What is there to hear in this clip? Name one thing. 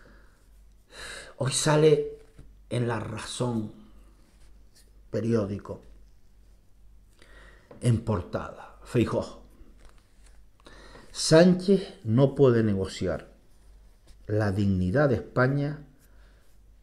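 An older man speaks calmly and close to a microphone, in short phrases with pauses.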